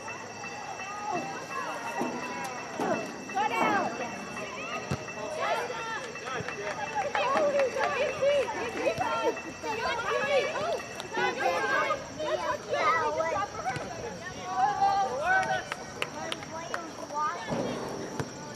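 Young women shout and call out across an open outdoor field.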